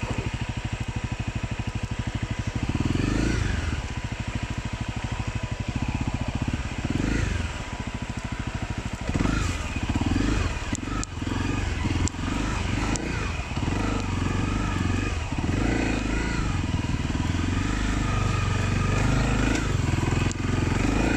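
A motorcycle engine chugs up close and revs up and down.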